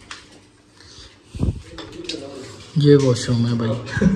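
A door handle clicks as a door is opened.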